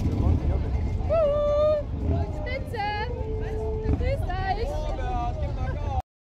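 High-pitched voices shout and cheer from a passing wagon.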